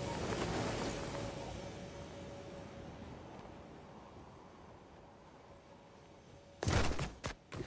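Wind rushes past during a glide and slowly fades.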